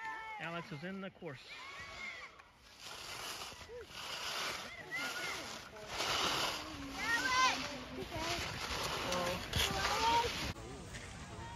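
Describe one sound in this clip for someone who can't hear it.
Skis scrape and hiss on packed snow as a skier carves turns.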